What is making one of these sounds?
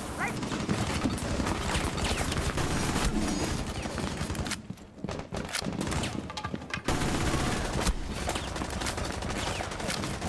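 An assault rifle fires bursts of shots.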